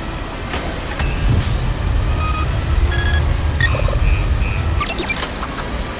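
A machine hums and whirs, rising in pitch.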